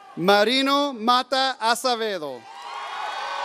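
A young man calls out loudly through a microphone in a large echoing hall.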